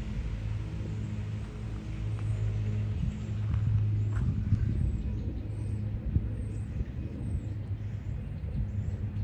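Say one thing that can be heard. Wind gusts steadily outdoors, rumbling low.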